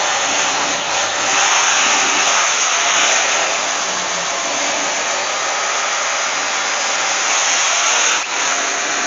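A power tool whirs steadily against metal.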